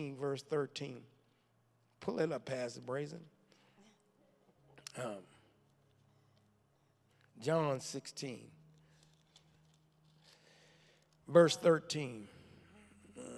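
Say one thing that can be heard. A man speaks into a microphone, pausing between phrases.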